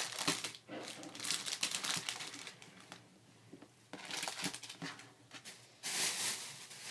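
Plastic packets rustle and crinkle as they are handled.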